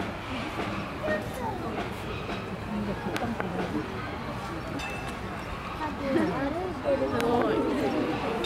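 An elephant shuffles its feet on sand.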